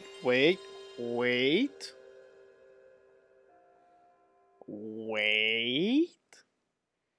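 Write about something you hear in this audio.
Synthesized tones play a swelling, chiming startup melody.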